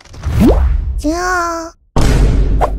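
A high, squeaky cartoon voice squeals with excitement.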